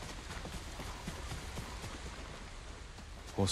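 Footsteps crunch softly on grass and dirt.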